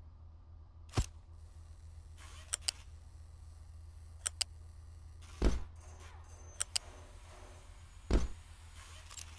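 Short soft thuds sound as objects are placed.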